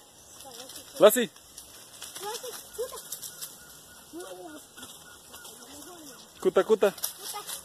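A small animal cries out several times outdoors.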